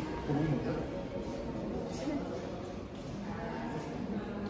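Several adults talk quietly in the background of an echoing room.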